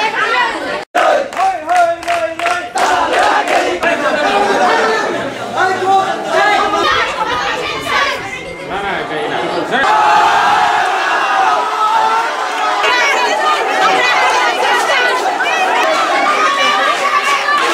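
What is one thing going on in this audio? A crowd of young people shouts and chants loudly.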